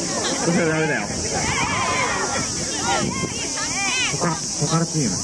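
A crowd of children chatter and call out excitedly outdoors.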